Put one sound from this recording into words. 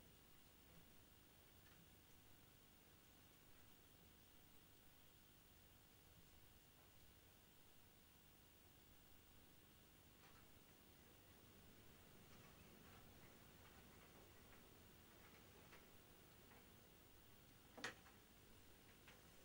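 A small plastic part is handled with faint taps and clicks.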